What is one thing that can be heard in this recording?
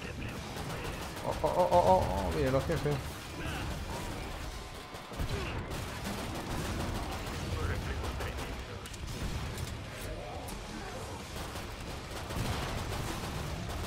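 Pistols fire in quick bursts.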